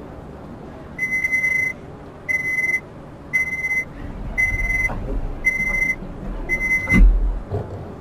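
A door warning signal beeps repeatedly.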